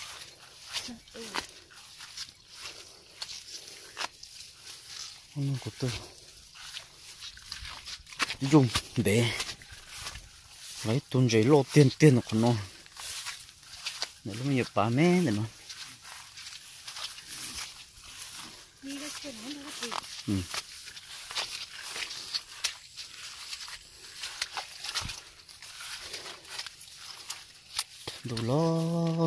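Wind blows across open grassland.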